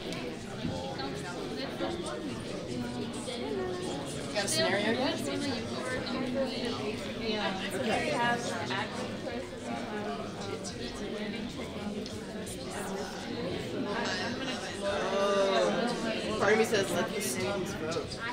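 A crowd of men and women chatters all around in a large echoing hall.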